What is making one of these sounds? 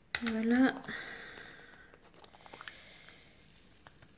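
A plastic pen taps softly as tiny beads are pressed into place.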